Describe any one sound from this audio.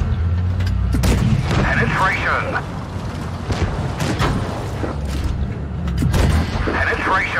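Tank guns fire with loud booms.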